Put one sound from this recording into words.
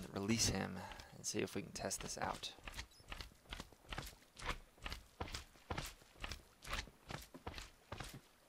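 Footsteps tread steadily and quickly on stone.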